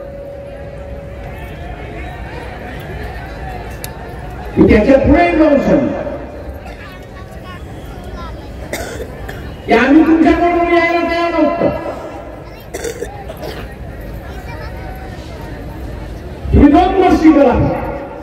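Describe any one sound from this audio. An elderly man speaks loudly and forcefully through a loudspeaker, his voice rising in bursts.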